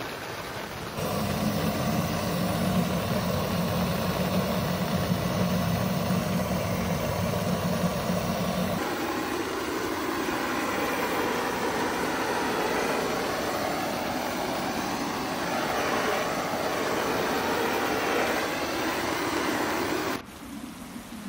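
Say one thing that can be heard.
A gas torch roars with a steady hissing flame.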